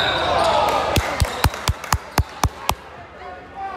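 A basketball bounces sharply on a wooden floor in a large echoing gym.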